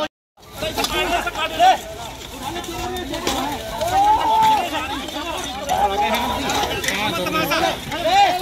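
A crowd of men shouts and calls out excitedly close by.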